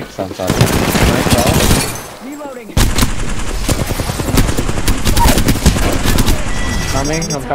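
Gunfire rattles rapidly and loudly.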